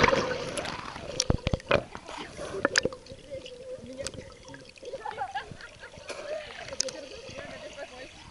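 Water gurgles and bubbles underwater.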